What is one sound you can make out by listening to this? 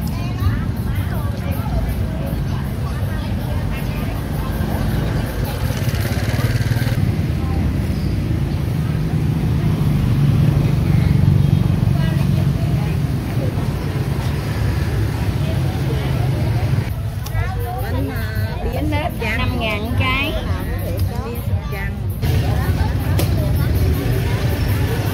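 Motorbikes putter past on a busy street.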